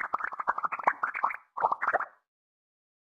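Water sprays from a shower.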